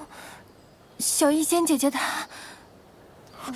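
A young woman speaks softly through a microphone.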